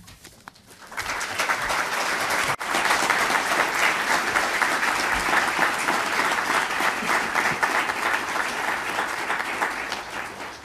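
A group of people applaud in a large room.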